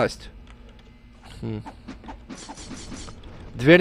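A rifle is lowered and a knife is drawn with a short metallic scrape.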